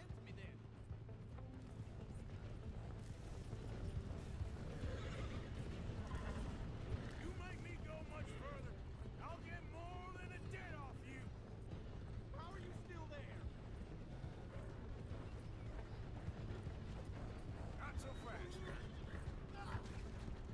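A horse gallops over gravel.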